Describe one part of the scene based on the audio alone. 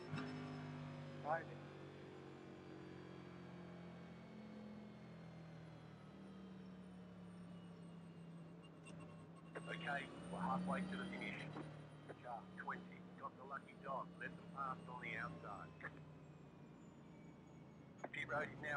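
A race car engine drones steadily at low speed.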